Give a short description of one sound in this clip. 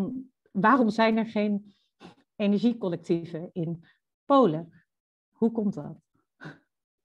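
A young woman speaks calmly through a microphone, as on an online call.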